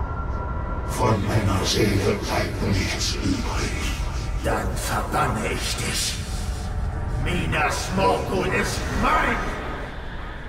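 A man speaks in a low, intense voice, close by.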